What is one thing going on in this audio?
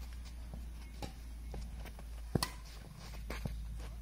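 A ball is kicked with dull thuds outdoors.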